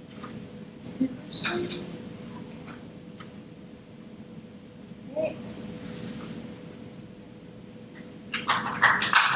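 A woman speaks briefly through a microphone in a large hall.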